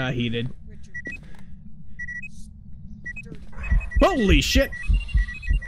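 An electronic device beeps in short high tones.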